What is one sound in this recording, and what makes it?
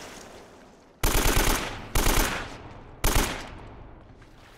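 A rifle fires short, loud bursts of shots.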